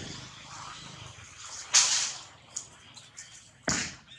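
Monkeys scuffle and rustle through dry leaves.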